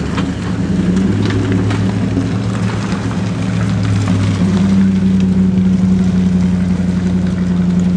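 Tyres squelch and slip in deep mud.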